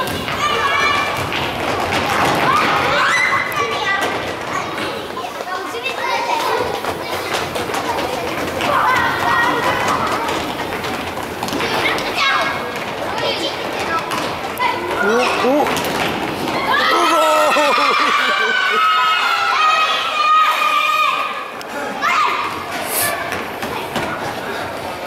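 Young children shout and cheer in a large echoing hall.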